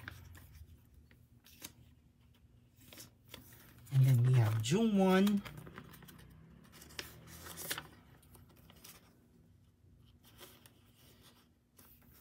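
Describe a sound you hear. Plastic sleeves crinkle and rustle as binder pages are turned.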